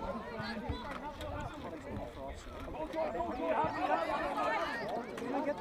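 Children call out and chatter on an open field outdoors.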